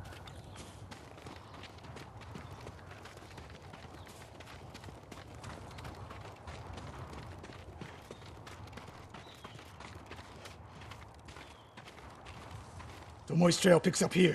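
Footsteps run over a dirt path.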